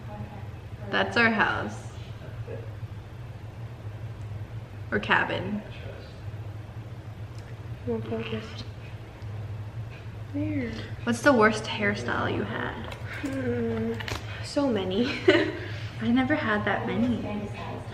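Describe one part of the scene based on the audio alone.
Two young women talk with animation close by.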